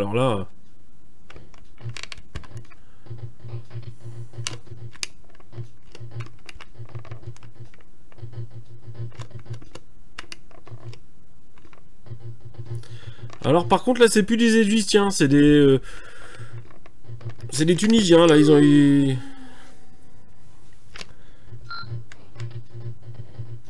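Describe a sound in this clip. A retro video game plays buzzing, beeping sound effects.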